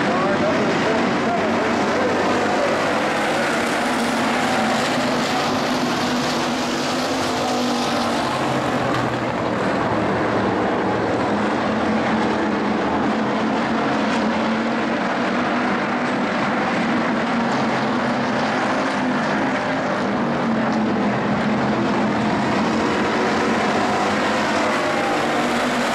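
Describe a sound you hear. Race car engines rev up and down as the cars accelerate.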